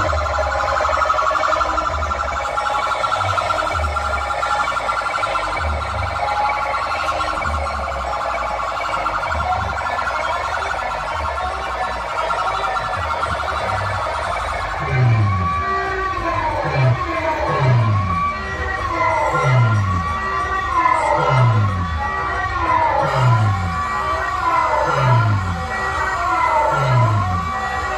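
Loud dance music with heavy bass booms from a huge speaker stack.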